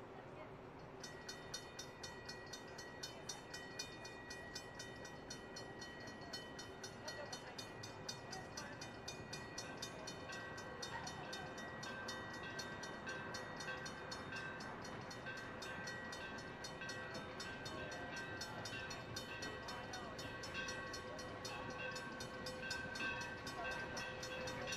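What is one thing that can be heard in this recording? A steam locomotive chuffs in a fast, steady rhythm as it approaches and grows louder.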